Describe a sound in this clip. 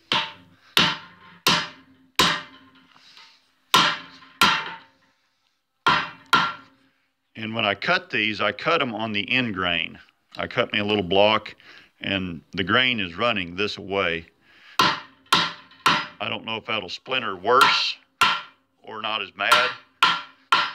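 A hammer strikes a metal bar in a vise with sharp ringing clangs.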